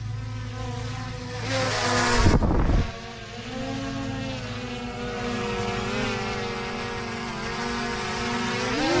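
A drone hovers close by with a high, steady whirring buzz.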